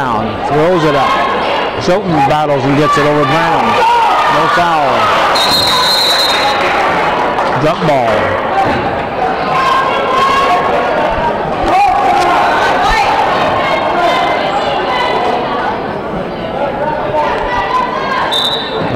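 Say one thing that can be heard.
A crowd of spectators cheers and shouts loudly in a large echoing gym.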